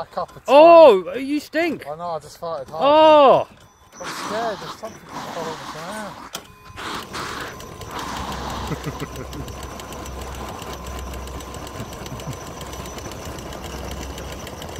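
A small electric motor whines as a toy truck crawls and its tyres spin.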